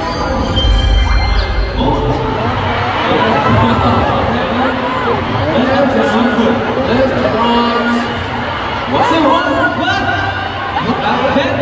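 A large crowd screams and cheers in a huge echoing arena.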